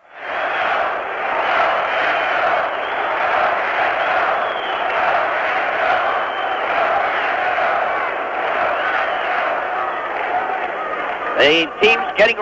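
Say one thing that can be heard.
A large crowd cheers and roars loudly in a big echoing arena.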